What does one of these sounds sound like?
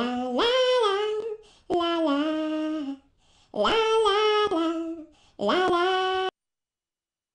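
A young woman's voice sings a short, cheerful tune close to the microphone.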